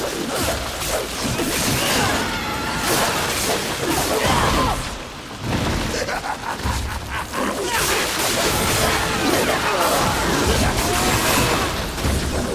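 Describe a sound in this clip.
Blades strike and slash against a hard shell in quick bursts.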